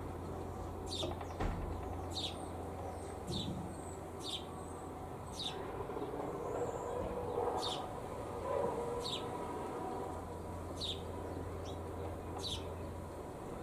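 Sparrows chirp in short, sharp calls nearby.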